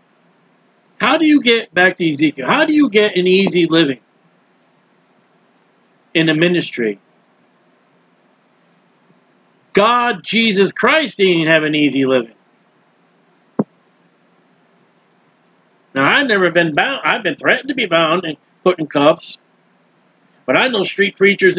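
A middle-aged man speaks calmly into a close microphone, in short bursts with pauses.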